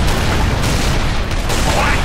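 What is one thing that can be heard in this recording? A loud explosion booms up close.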